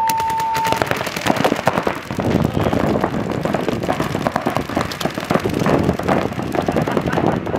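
Paintball markers fire in rapid bursts of sharp pops.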